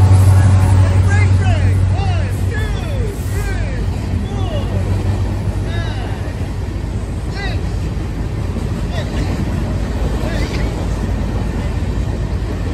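Steel wheels squeal on the track.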